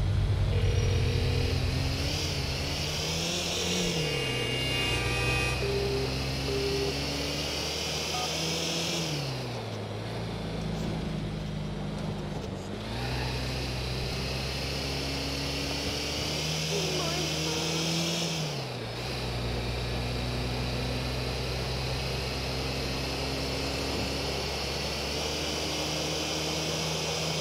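A car engine hums and revs up and down repeatedly.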